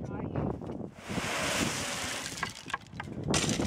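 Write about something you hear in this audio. Gravel pours from a wheelbarrow with a rushing rattle.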